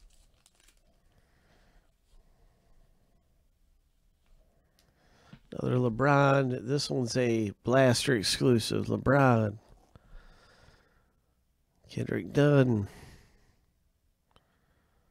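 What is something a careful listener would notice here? Glossy trading cards slide against each other in someone's hands.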